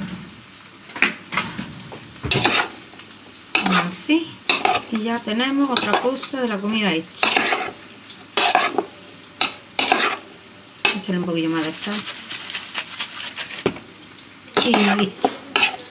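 Salad leaves rustle as a spoon tosses them in a bowl.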